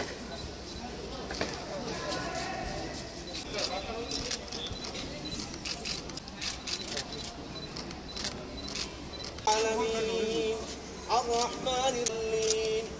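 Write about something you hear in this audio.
A crowd of men and women murmurs quietly outdoors.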